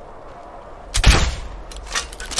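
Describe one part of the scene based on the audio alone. A crossbow fires with a sharp thud.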